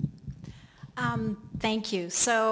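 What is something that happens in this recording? A woman speaks into a microphone in an echoing room.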